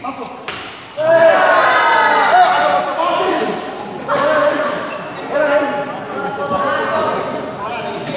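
Men shout and call out loudly.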